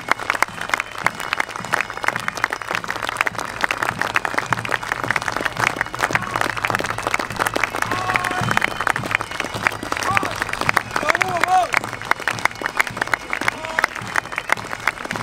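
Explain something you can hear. A crowd of people claps steadily.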